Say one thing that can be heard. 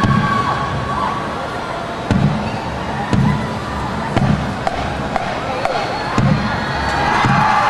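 A marching band plays brass instruments in a large open stadium.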